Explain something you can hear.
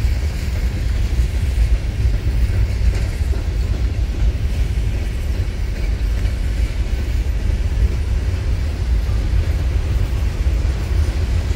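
Freight train cars rumble steadily past on the rails.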